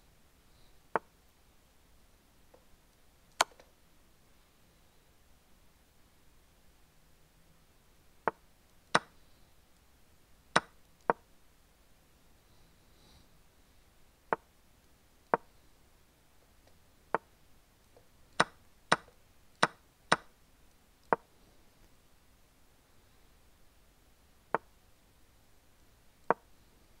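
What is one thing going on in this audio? Short clicks of chess pieces being moved sound now and then.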